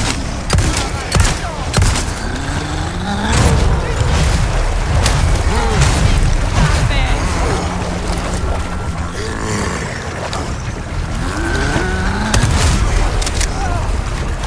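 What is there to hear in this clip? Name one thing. Shotgun blasts boom sharply.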